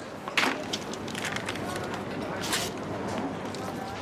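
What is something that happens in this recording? Paper rustles as an envelope is opened.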